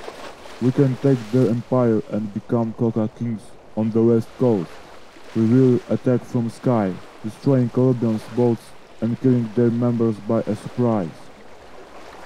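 A man speaks calmly and steadily.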